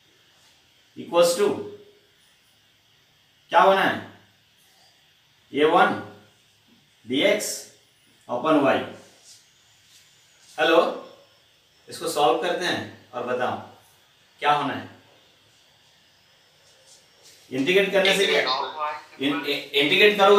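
A middle-aged man speaks slowly and clearly in short phrases, as if lecturing, close to a microphone.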